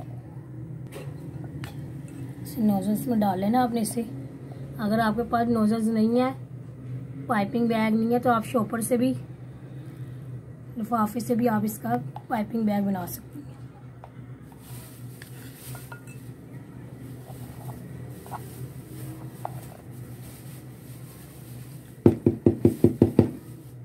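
A metal spoon scrapes and taps against a glass bowl.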